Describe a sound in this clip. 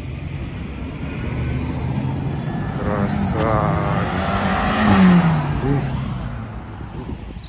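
Road traffic rumbles steadily nearby outdoors.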